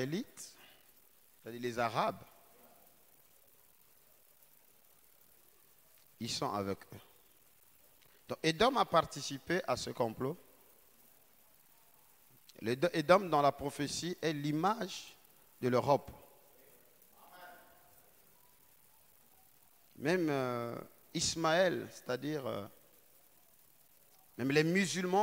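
A man speaks with emphasis into a microphone, in short bursts with pauses.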